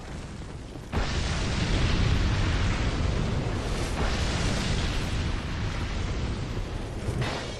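A fireball bursts with a loud whoosh.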